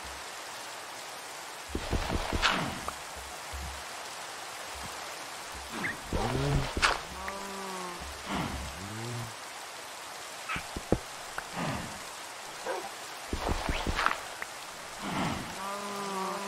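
Blocks crunch and break as they are dug out.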